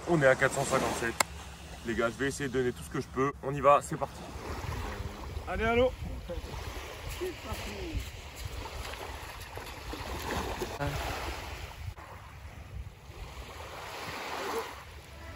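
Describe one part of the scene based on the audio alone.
Gentle waves wash onto a beach.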